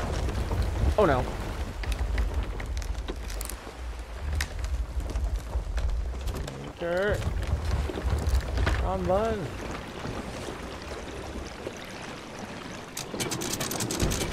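Waves wash around a wooden ship.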